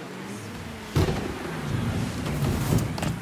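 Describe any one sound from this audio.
A body thuds onto a car hood.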